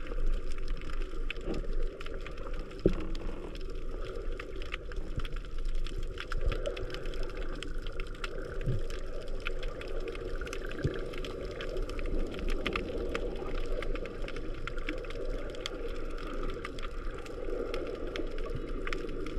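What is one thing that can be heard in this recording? Underwater clicks and crackles sound steadily all around.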